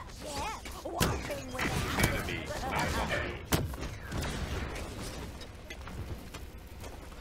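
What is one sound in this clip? Explosions boom in a video game.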